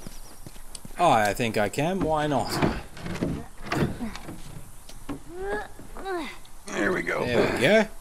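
A young man talks casually into a microphone, close up.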